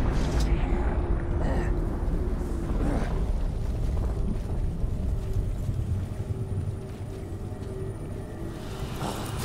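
Footsteps walk on hard ground.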